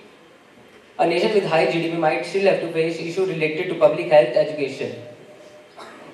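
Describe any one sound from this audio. A teenage boy speaks with expression into a microphone over loudspeakers in a large hall.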